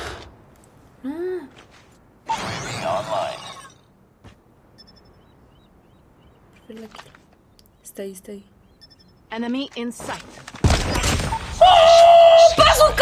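A young woman speaks close to a microphone, then exclaims loudly.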